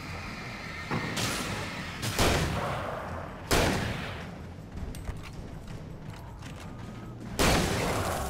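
A shotgun fires with sharp blasts.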